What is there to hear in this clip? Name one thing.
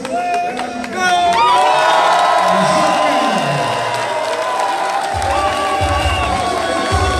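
A crowd chants loudly.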